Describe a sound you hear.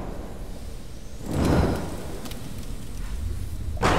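A bundle bursts into flames with a sudden whoosh.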